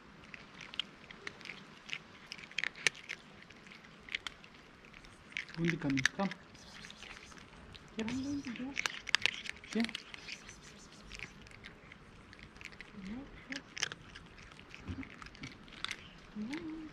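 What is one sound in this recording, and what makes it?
A cat crunches dry food up close.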